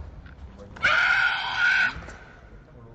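A young woman shouts a sharp, drawn-out cry in a large echoing hall.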